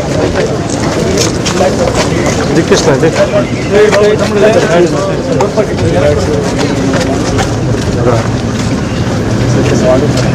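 A crowd of men talks and calls out loudly outdoors.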